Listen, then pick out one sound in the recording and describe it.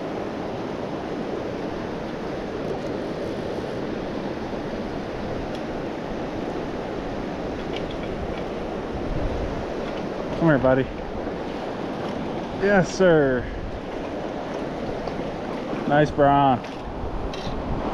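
A river rushes steadily over rocks nearby.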